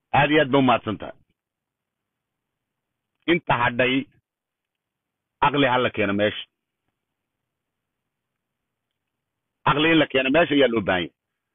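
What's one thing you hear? An older man speaks close to a phone microphone in short bursts with pauses between them.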